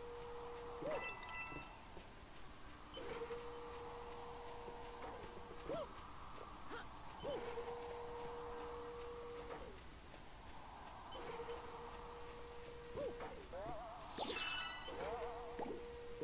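Game music plays with a steady humming tone and bright chimes.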